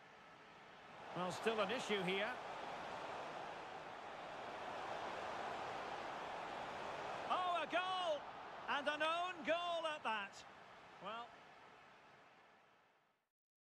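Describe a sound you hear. A large crowd roars and cheers.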